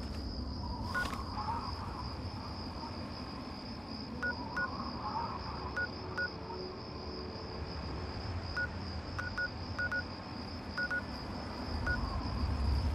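A menu beeps with short electronic blips.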